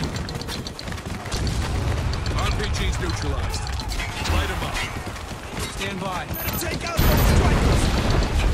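Heavy explosions boom and rumble in bursts.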